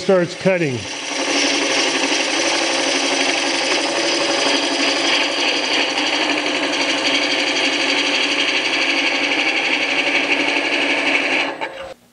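A lathe tool scrapes and shaves a spinning block of wood with a steady rasping hiss.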